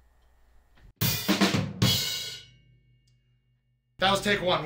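A drum kit is played hard with crashing cymbals.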